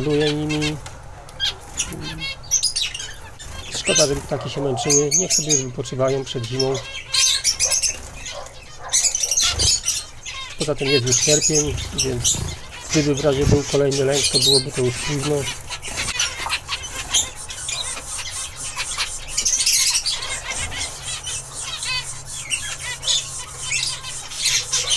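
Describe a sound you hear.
Small finches chirp and beep in quick, high calls.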